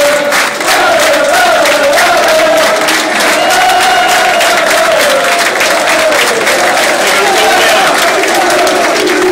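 A crowd claps in rhythm.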